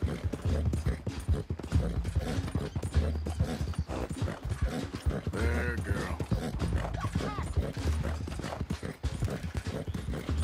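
Tall grass and brush swish against a running horse.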